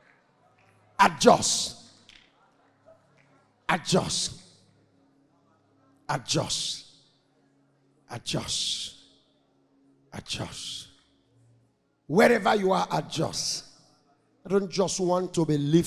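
A man preaches forcefully into a microphone in short bursts, heard through loudspeakers.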